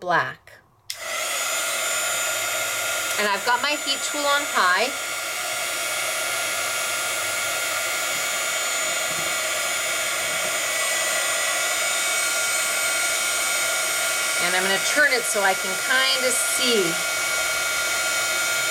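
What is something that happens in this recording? A heat gun blows with a steady whirring roar.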